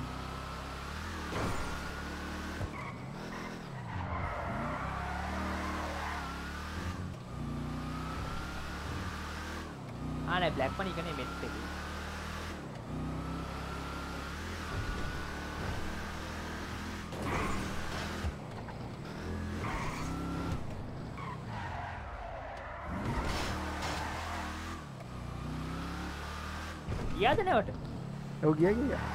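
A car engine hums and revs as it drives along.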